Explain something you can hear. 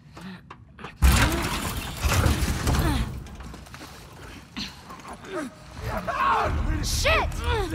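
A young woman grunts with effort.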